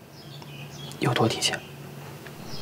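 A young man asks a question calmly close by.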